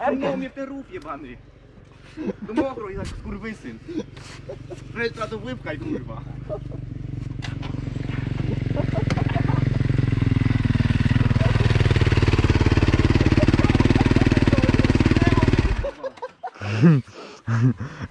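Young men talk nearby outdoors.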